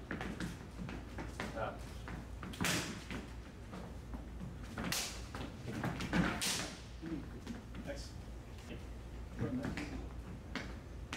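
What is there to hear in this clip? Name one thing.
Sneakers squeak and thud on a hard floor.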